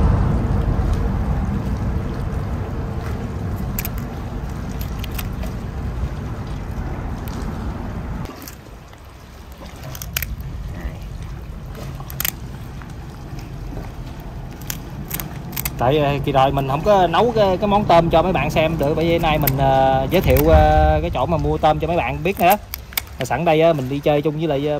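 Scissors snip through hard lobster shell with sharp crunching clicks.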